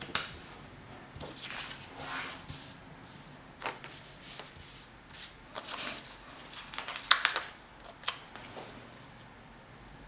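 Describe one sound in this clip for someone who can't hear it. Paper sheets rustle and slide across a table.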